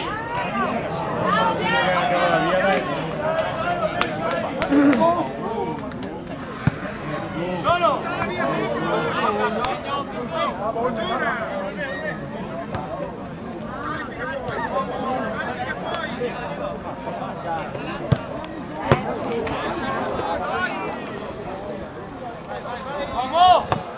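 Several men and women chat nearby outdoors.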